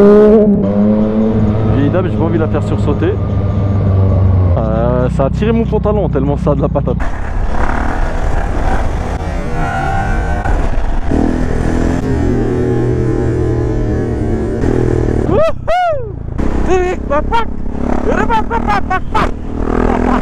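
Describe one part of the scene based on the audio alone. A motorcycle engine roars and revs up and down.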